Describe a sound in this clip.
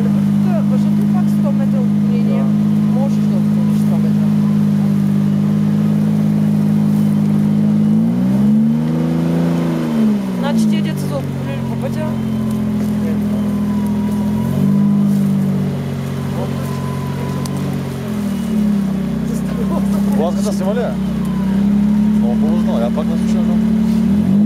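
An off-road engine idles loudly and revs up and down.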